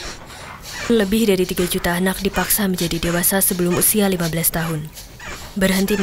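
A young girl sings loudly nearby.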